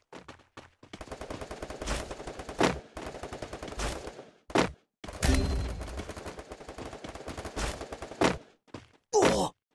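Quick footsteps patter across hard ground.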